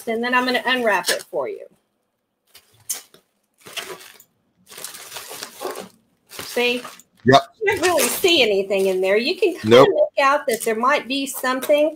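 Bubble wrap crinkles and rustles as hands handle it.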